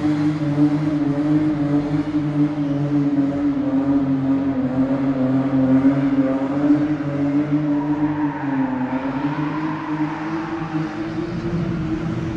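A car engine roars steadily, echoing under a low concrete roof.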